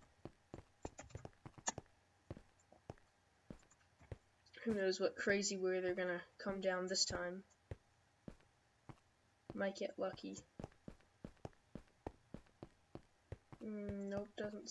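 Footsteps tread quickly on stone.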